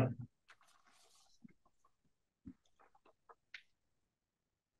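A man speaks quietly in a room, picked up from a distance by a microphone.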